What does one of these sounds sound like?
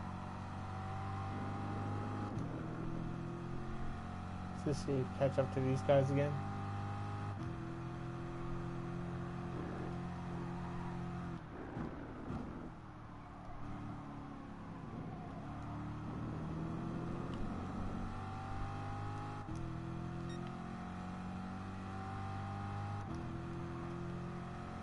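A race car engine roars loudly, rising in pitch through each gear and dropping at every shift.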